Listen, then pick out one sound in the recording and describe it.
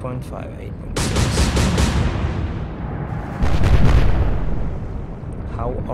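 Guns fire in loud booming bursts.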